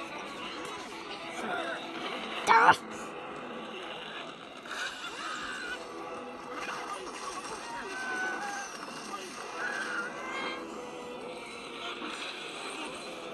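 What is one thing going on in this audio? Cheerful game music and cartoon sound effects play from a small tablet speaker.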